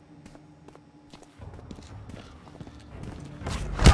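Soft footsteps tread slowly on a hard floor.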